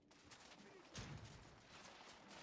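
A gun fires with a loud blast.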